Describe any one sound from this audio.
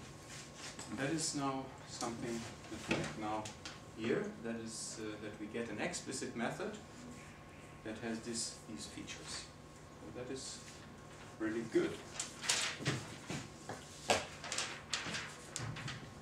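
A middle-aged man lectures calmly.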